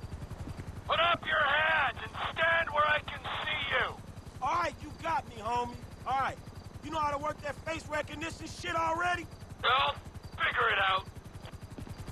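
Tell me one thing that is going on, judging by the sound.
A man speaks firmly through a loudspeaker.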